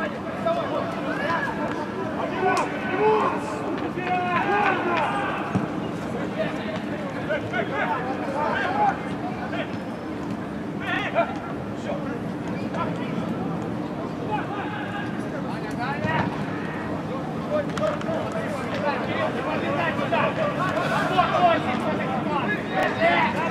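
Young men shout and call to each other across a large open ground, with a slight echo.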